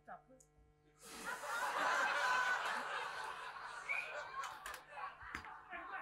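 An audience laughs in a large hall.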